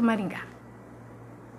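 A young woman speaks cheerfully into a handheld microphone, close by.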